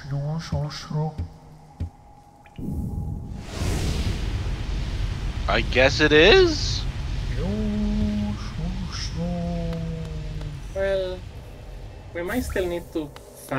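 A young woman talks with animation into a microphone, close by.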